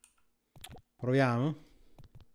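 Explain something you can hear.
A man speaks close to a microphone.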